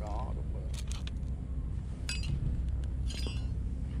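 A metal tray clatters onto a scale.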